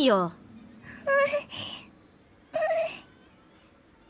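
A girl whimpers shyly.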